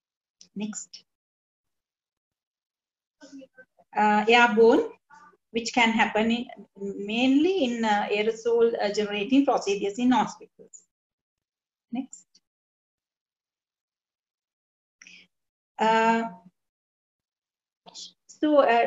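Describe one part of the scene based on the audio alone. A woman speaks calmly through a microphone on an online call, in bursts with pauses.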